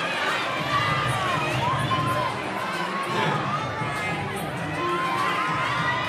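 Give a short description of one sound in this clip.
A large crowd cheers and shouts in an echoing hall.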